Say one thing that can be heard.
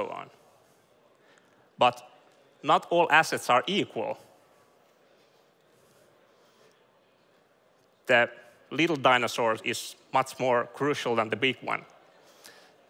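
A man speaks with animation through a microphone in a large hall, pausing between phrases.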